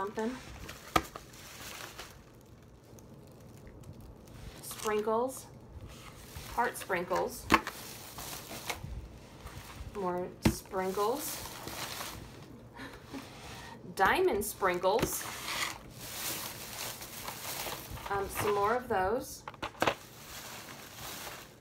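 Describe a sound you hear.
Cardboard boxes are set down on a table with soft knocks.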